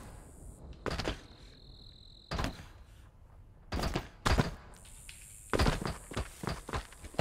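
A rifle fires in short, loud bursts.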